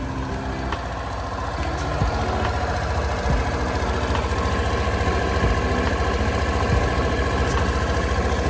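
A scooter engine idles with a steady low rumble.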